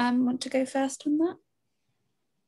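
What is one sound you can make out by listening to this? A young woman speaks through an online call.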